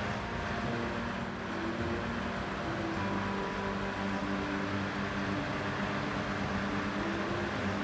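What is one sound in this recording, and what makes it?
A car engine hums steadily as it drives along.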